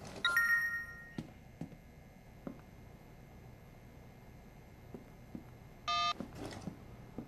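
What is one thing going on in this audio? A phone chimes with a short notification tone.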